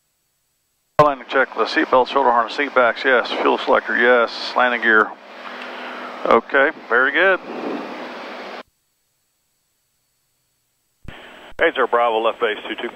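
A man speaks calmly through a headset microphone.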